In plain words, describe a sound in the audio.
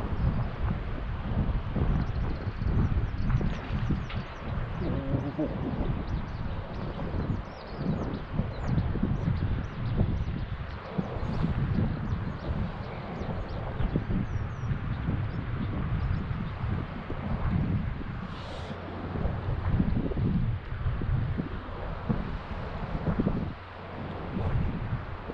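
A river flows and ripples nearby.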